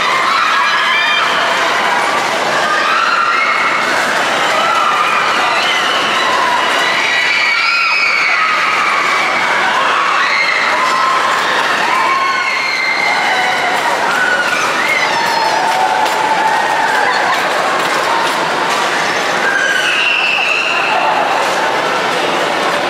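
A crowd of young riders shouts and screams with excitement.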